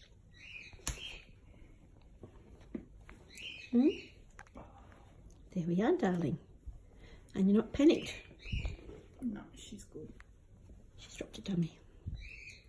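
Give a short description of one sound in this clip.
A young bat squeaks and chirps close by.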